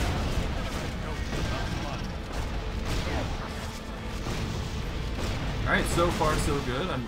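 Magic spells whoosh and crackle in a video game battle.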